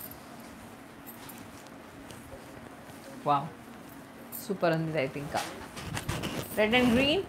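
Silk fabric rustles as it is draped.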